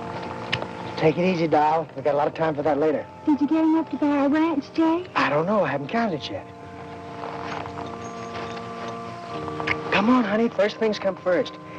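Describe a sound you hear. A young woman speaks softly and with emotion close by.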